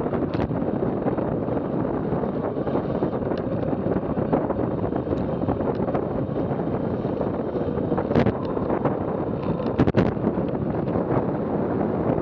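Wind roars and buffets loudly past a fast-descending bicycle.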